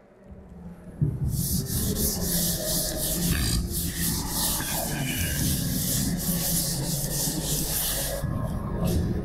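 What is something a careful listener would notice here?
A cloth rubs and wipes across a chalkboard.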